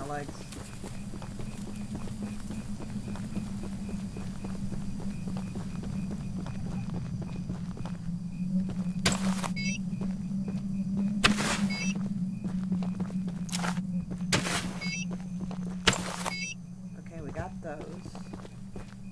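Footsteps crunch through grass and then thud on wooden boards.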